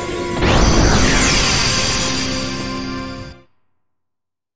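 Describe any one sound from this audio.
Large doors swing open with a loud, swelling rush of sound.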